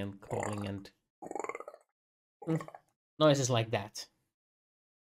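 Adult men talk with animation over an online call.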